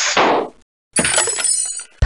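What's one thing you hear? Wooden crates clatter and break apart.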